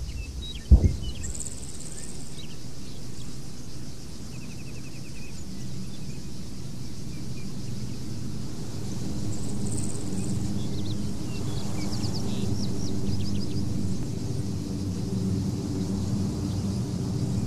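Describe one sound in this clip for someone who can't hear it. An aircraft engine drones overhead, growing louder as it approaches.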